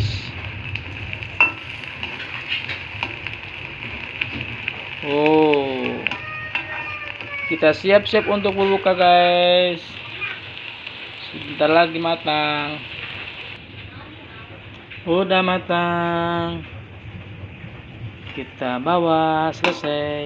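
A metal spatula scrapes and taps against a pan.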